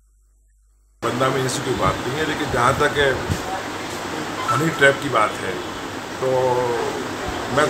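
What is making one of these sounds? A middle-aged man speaks firmly and with animation, close to a microphone.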